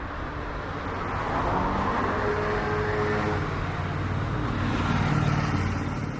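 A scooter engine hums as it passes close by.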